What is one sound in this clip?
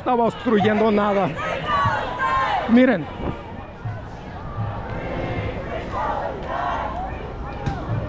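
A crowd murmurs outdoors on a busy street.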